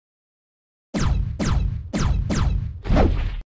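A laser gun fires a quick series of descending zaps.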